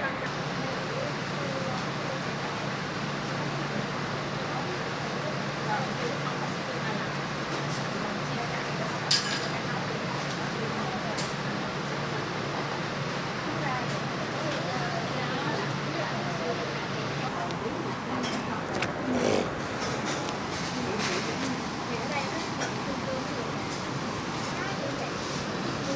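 Many people chatter in a busy, noisy room.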